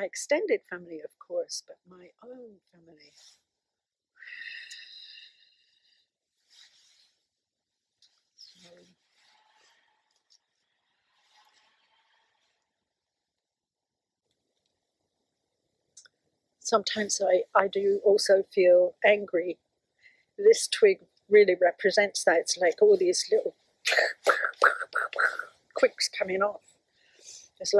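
An older woman speaks calmly and close by.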